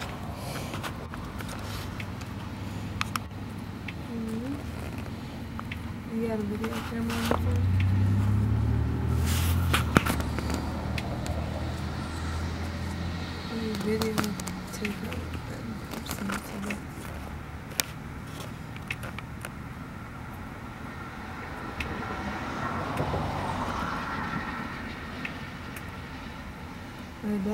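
A vehicle engine idles nearby.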